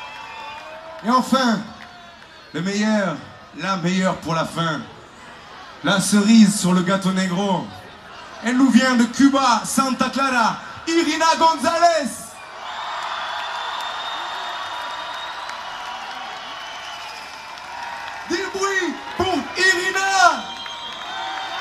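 A man sings loudly through loudspeakers outdoors.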